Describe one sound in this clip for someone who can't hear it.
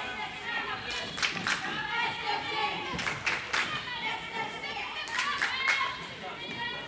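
A ball bounces sharply on a hard floor.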